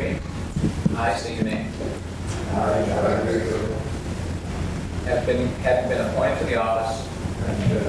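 A group of people repeats the phrases together.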